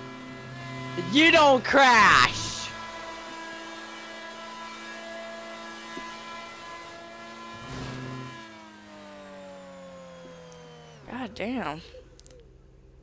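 A car engine revs up and down sharply.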